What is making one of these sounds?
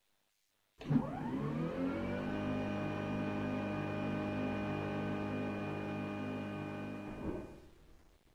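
A jet engine starts up with a rising whine, then hums steadily before cutting off.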